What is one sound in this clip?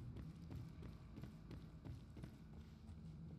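Footsteps thud at a steady pace on a hard floor.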